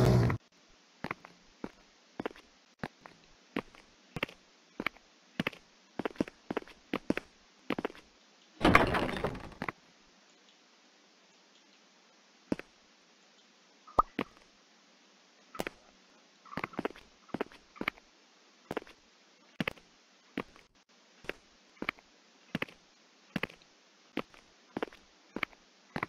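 Footsteps tap on a hard floor at a steady pace.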